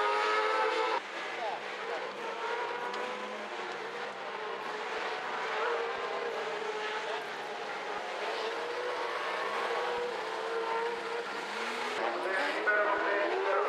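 Engines drone more faintly from cars racing in the distance.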